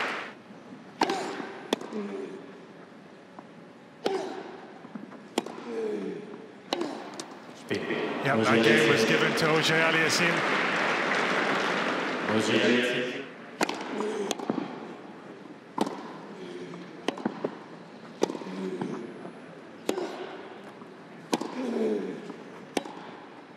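Tennis balls are struck sharply back and forth with rackets.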